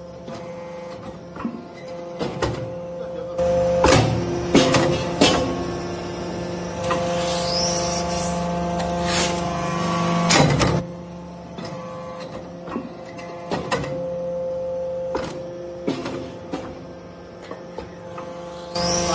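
A hydraulic press hums steadily as it runs.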